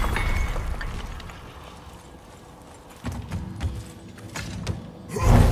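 Heavy footsteps crunch over loose rubble.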